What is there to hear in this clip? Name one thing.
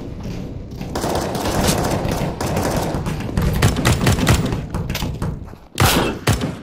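Rifle shots fire in quick bursts.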